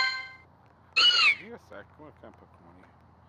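A cartoon creature gives a short high cry.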